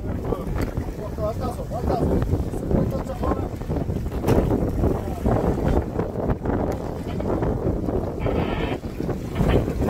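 Water splashes against the hull of a boat.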